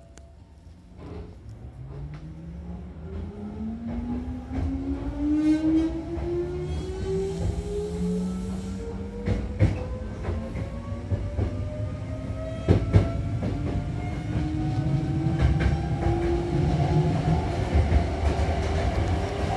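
Train wheels clatter and rumble over the rails.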